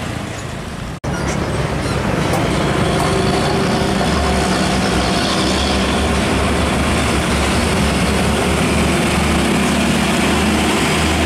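A heavy truck's diesel engine rumbles loudly as it pulls forward close by.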